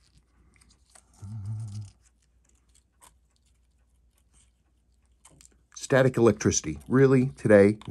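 A stiff paper card scrapes lightly against a small metal watch.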